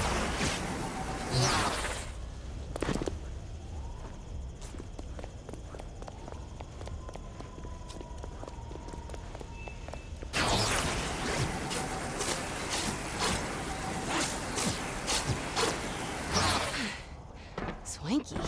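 Crackling energy bursts hiss and whoosh loudly.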